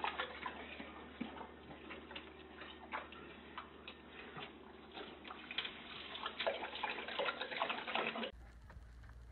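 A dog laps water noisily.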